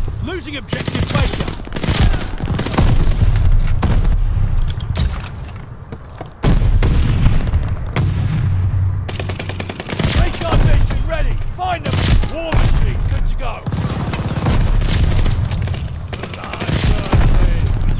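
A submachine gun fires.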